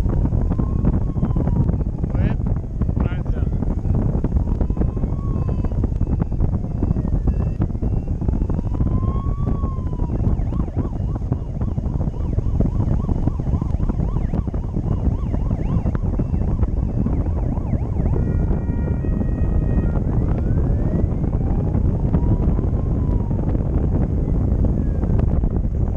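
Wind roars loudly and steadily past the microphone.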